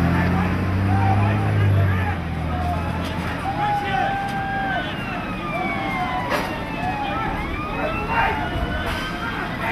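An ambulance engine hums as it drives slowly closer.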